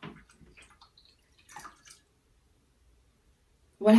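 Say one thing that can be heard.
Water pours and splashes into a glass.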